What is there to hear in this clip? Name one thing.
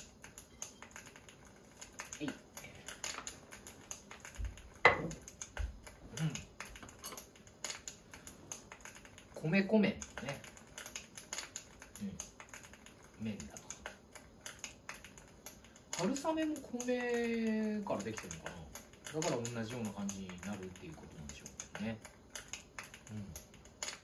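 Chopsticks clink against a metal pot.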